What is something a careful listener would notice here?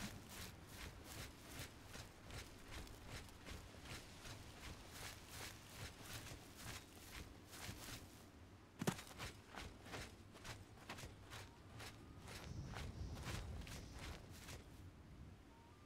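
Footsteps crunch on a dirt path at a steady walking pace.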